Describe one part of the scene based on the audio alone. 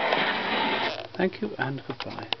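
A gramophone needle scrapes and clicks as the record is stopped.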